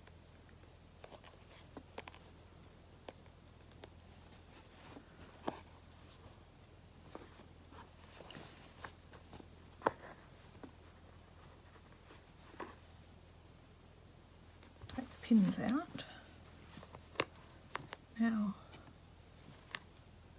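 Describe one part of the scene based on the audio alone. Fabric rustles and crinkles as hands handle it.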